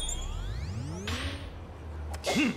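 A golf club swishes through the air.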